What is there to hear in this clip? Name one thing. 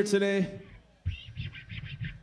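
An electric guitar strums chords through an amplifier.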